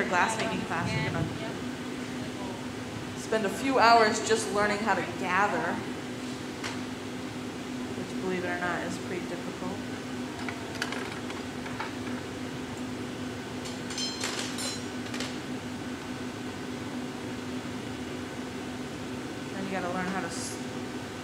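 A woman speaks calmly through a headset microphone.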